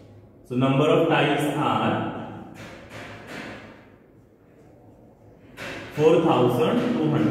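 A man speaks calmly, as if explaining to a class.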